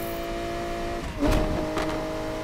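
A car engine briefly dips in pitch as a gear changes.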